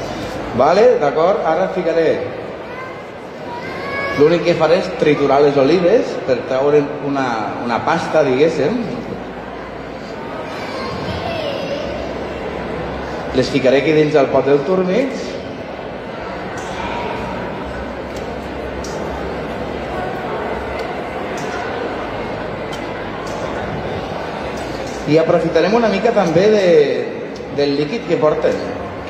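A man talks with animation in a large hall.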